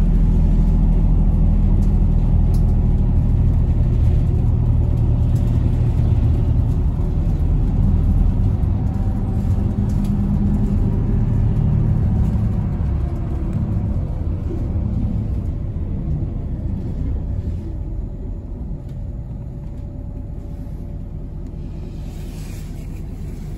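Tyres rumble steadily on the road, heard from inside a moving car, growing quieter as the car slows.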